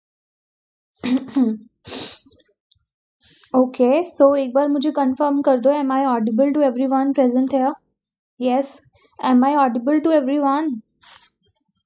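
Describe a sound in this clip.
A young woman speaks calmly, close to a microphone.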